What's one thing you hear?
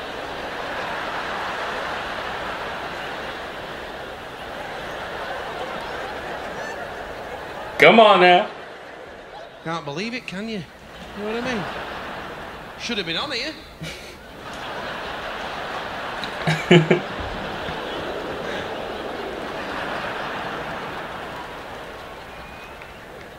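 A large audience laughs and applauds in a big hall.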